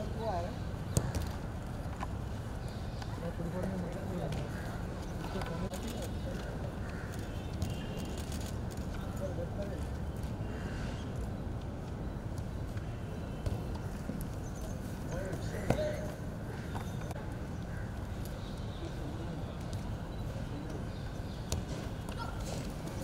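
A football is kicked with dull thuds on grass.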